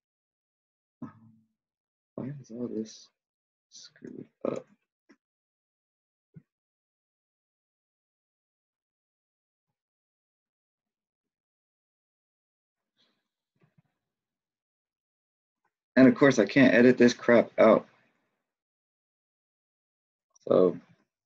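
A man speaks calmly and close to a microphone, in short bursts with long pauses.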